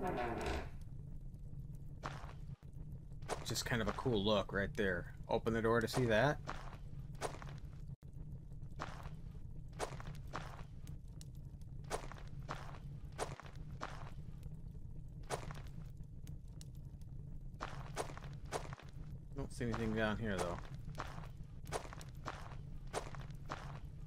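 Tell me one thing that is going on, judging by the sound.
Footsteps tread steadily on stone in an echoing space.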